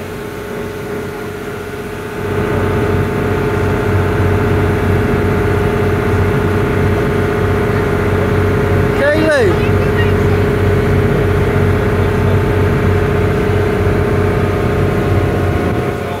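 Water splashes and rushes in a boat's wake.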